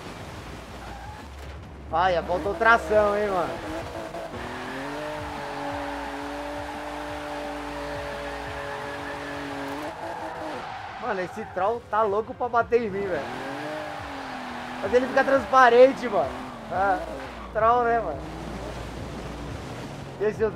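A car engine revs loudly and rises and falls in pitch.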